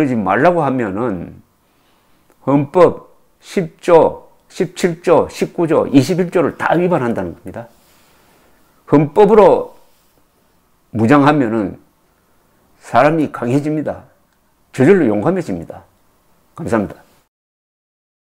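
An elderly man speaks calmly and warmly, close to a microphone, with short pauses.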